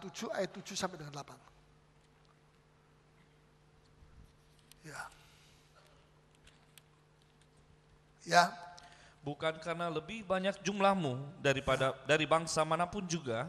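A middle-aged man preaches with animation into a microphone.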